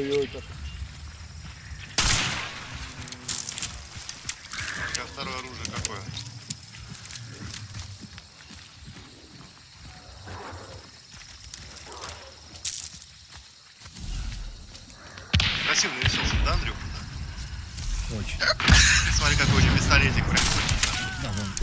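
Footsteps crunch and rustle through grass and bushes.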